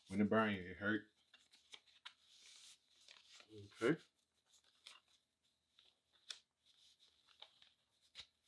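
Hands rub and smooth a cloth.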